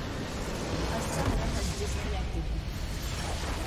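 A huge explosion booms and rumbles.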